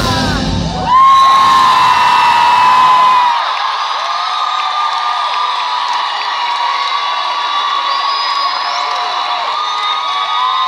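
A man sings loudly through loudspeakers in a large hall.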